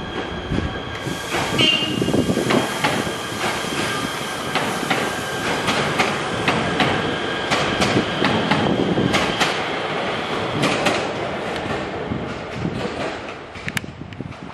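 A train rumbles past on the tracks with wheels clattering over rail joints.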